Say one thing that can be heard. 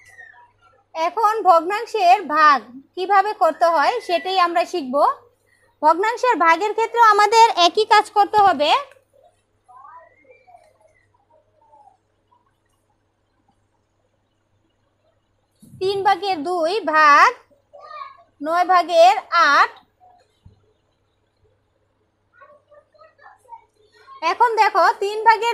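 A woman speaks calmly and clearly, close by, in short bursts with pauses.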